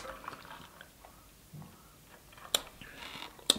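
A woman sips through a straw from a bottle.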